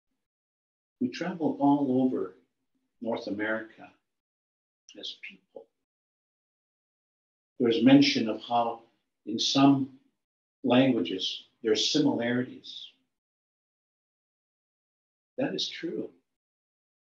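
An elderly man speaks calmly in short bursts through an online call.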